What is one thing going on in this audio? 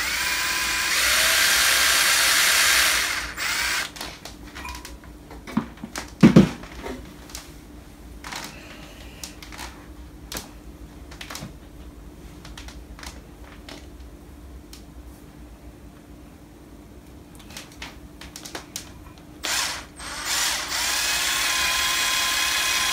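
A cordless drill whirs loudly and steadily.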